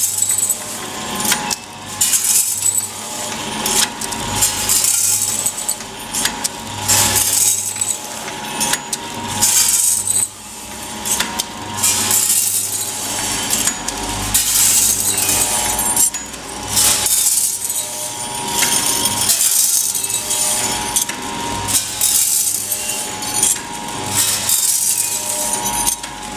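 A packaging machine runs with a steady hum and rhythmic clacking.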